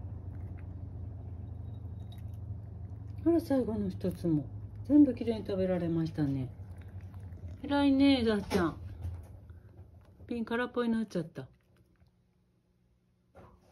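A cat laps water from a glass jar.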